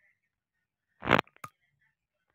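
A short game click sounds as a menu pops open.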